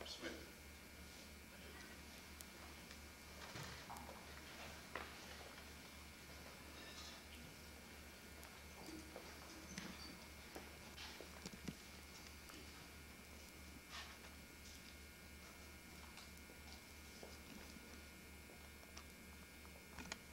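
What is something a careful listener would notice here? An audience murmurs and shifts quietly in a large room.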